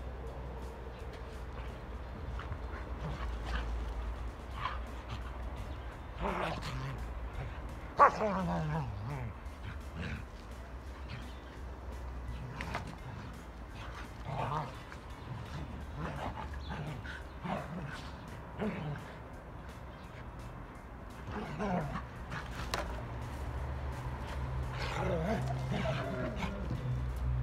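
Dogs growl and snarl as they play-fight.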